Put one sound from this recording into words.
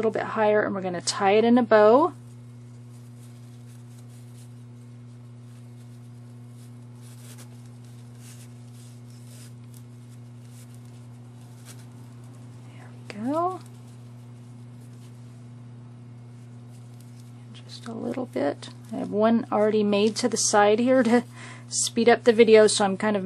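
Fabric ribbon rustles softly as it is tied into a bow.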